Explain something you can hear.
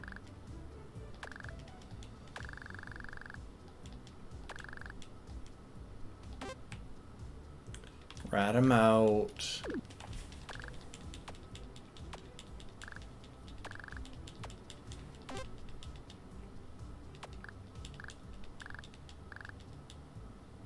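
A video game gives short electronic beeps.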